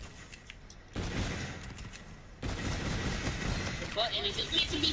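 Rapid gunfire rattles.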